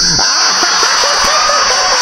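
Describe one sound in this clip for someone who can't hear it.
A young man exclaims with excitement close to a microphone.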